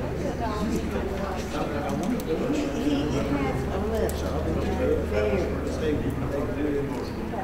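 Another middle-aged man answers in a conversational voice.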